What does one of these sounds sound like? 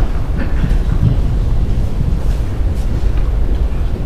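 A woman speaks into a microphone in a large hall.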